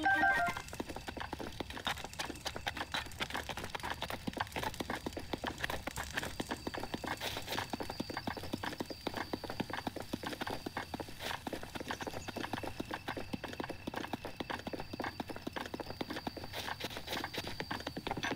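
Footsteps run quickly over grass and ground.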